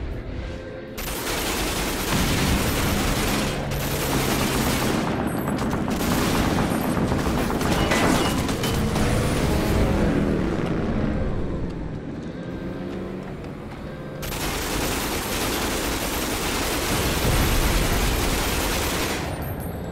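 A machine gun fires in loud rapid bursts.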